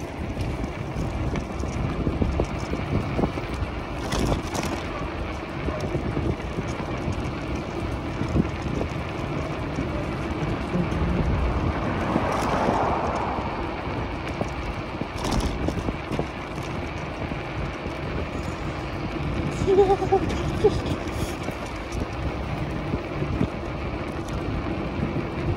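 Bicycle tyres roll and hum along the road.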